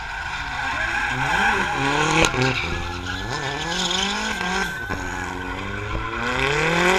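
A car engine revs up and down, roaring loudly.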